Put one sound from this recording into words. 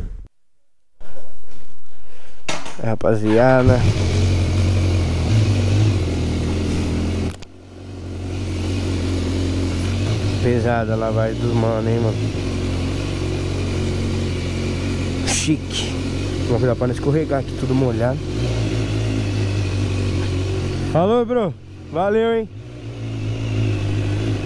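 A motorcycle engine starts up and idles with a steady low rumble.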